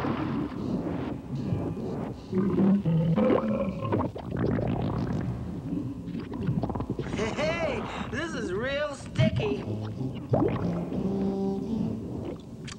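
Thick goo squelches and gurgles.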